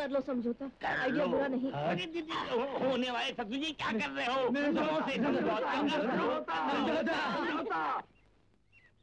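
Several men laugh loudly and heartily close by.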